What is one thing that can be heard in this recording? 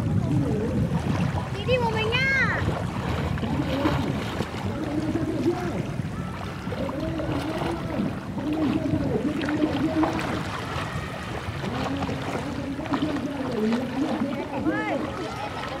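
A child talks and calls out nearby, outdoors.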